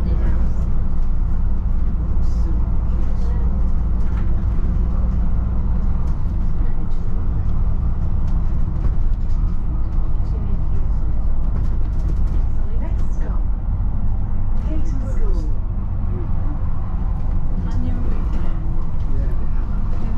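A bus engine rumbles steadily from inside.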